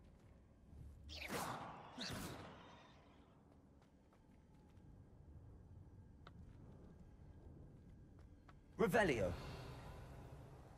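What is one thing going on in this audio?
A magic spell fires with a sharp whooshing burst.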